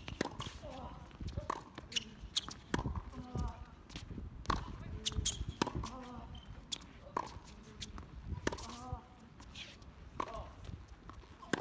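A tennis ball is struck back and forth with sharp pops from rackets.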